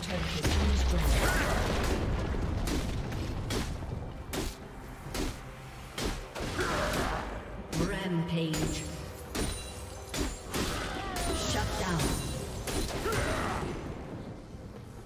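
Fantasy battle effects crackle, whoosh and burst in quick succession.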